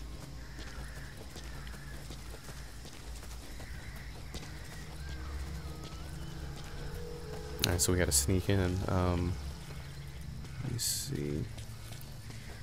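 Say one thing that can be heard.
Footsteps crunch quickly over gravel and dry ground.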